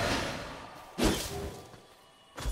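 A sword slashes and strikes a creature.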